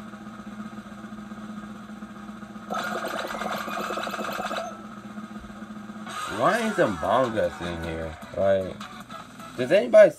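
Video game music and sound effects play through a television speaker.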